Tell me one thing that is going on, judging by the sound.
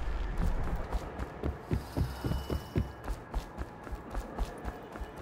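Footsteps thud on wooden boards at a steady walking pace.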